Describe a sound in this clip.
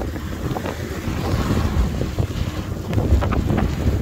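A car swishes past on a wet road.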